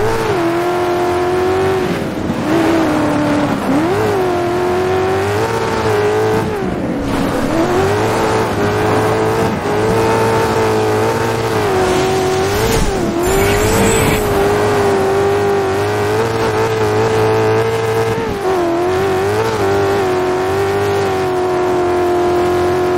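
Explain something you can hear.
Tyres skid and crunch over loose dirt.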